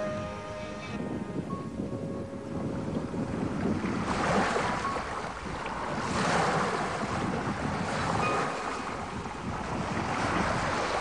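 Strong wind roars across the deck outdoors.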